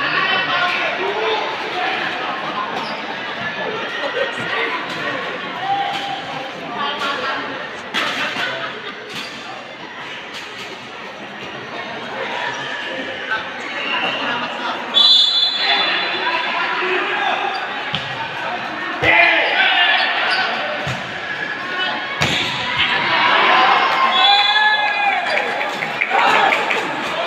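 A crowd of spectators chatters and cheers, echoing in a large hall.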